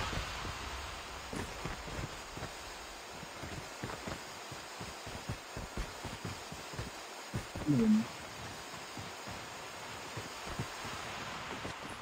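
Footsteps patter quickly as a figure runs in a game.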